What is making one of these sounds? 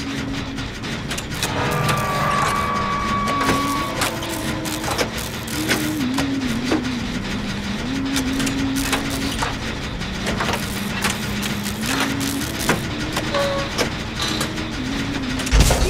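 Metal parts clink and rattle as a machine is repaired by hand.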